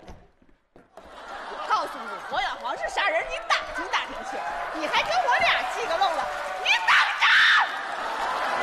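A young woman speaks loudly and with animation on a stage microphone.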